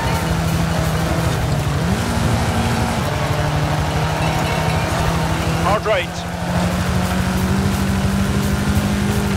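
A buggy engine drones and revs steadily.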